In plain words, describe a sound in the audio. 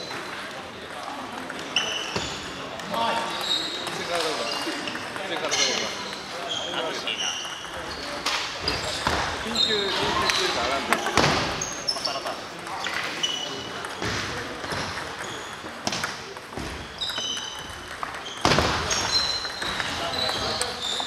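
Ping-pong balls click sharply on tables and paddles.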